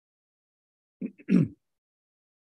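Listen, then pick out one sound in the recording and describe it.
A man plays a short burst on a harmonica.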